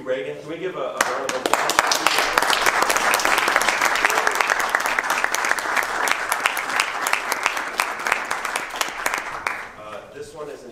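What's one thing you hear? Loud applause breaks out and fades away.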